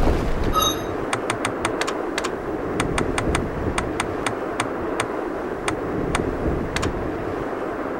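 Menu cursor ticks click rapidly, one after another.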